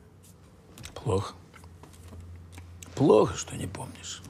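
An elderly man speaks gravely and close by.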